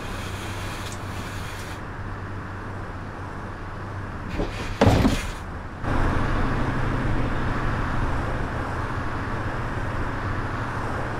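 A city bus diesel engine idles.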